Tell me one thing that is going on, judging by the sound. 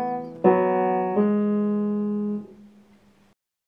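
A piano plays a few notes that ring out and fade.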